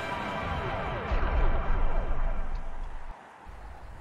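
A giant robot crashes down with a heavy rumbling thud.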